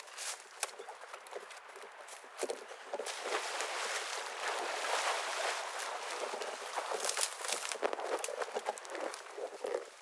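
Footsteps crunch and rustle through dry grass and brush.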